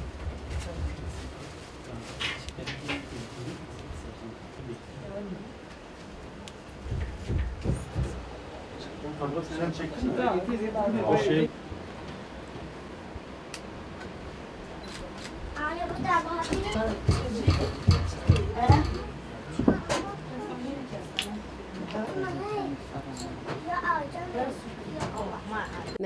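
A woman knocks yarn down on a loom with soft thumps.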